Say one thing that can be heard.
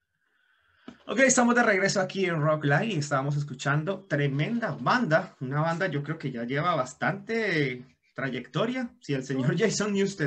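A man speaks with animation through an online call.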